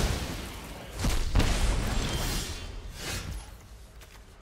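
Game sound effects whoosh and chime as cards are played.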